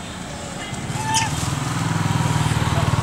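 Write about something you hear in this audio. A motorbike engine drones as it rides past nearby.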